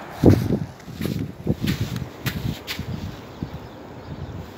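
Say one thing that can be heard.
Footsteps crunch and scrape on rocks and gravel.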